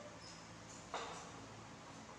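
A plate knocks down onto a hard floor.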